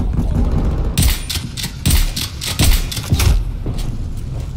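A gun fires several loud shots in quick bursts.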